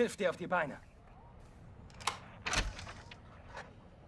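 A wooden door swings open.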